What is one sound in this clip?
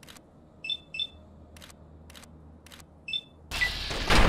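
Short electronic beeps chirp as a menu is scrolled.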